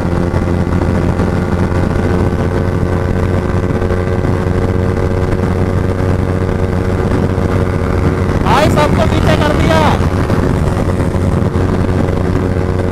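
A motorcycle engine drones steadily at high speed.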